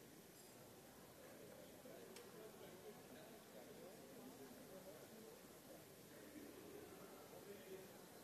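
A crowd of men and women chatter in a large room.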